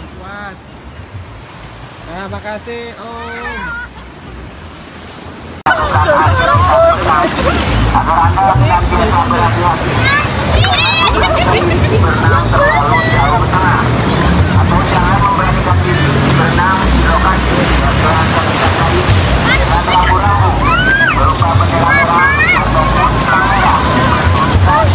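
A crowd of women and children chatter and call out close by.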